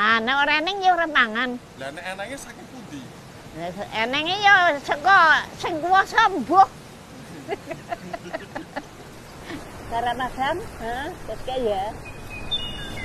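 An elderly woman speaks with emotion, close by.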